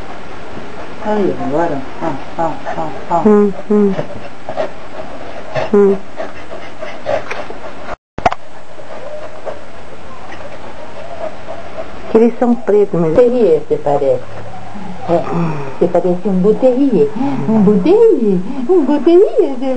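Puppies yelp and whine up close.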